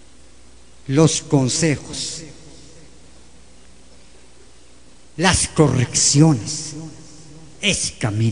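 An elderly man speaks into a microphone in short bursts, heard through a loudspeaker in a room.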